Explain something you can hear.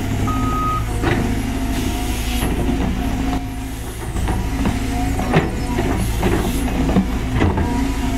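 An excavator bucket scrapes and clunks in the soil.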